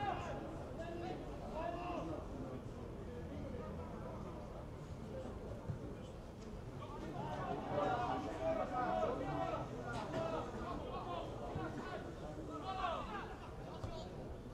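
Football players shout to each other across an open field.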